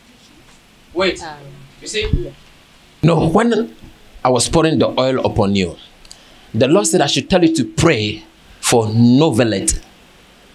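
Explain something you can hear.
A man preaches loudly and with passion through a microphone and loudspeakers.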